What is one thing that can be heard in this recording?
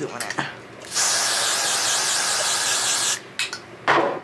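Hair spray hisses from a can.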